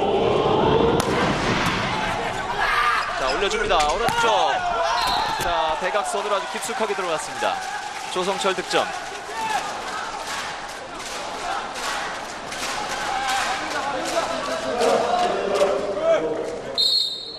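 A volleyball is struck hard with sharp smacks.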